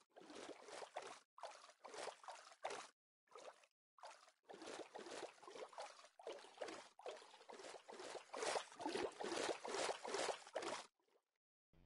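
Water swishes and splashes with each swimming stroke.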